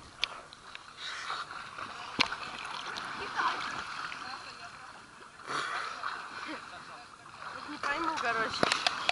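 Water splashes loudly as people jump into a lake.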